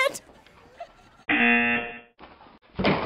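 A young woman laughs out loud.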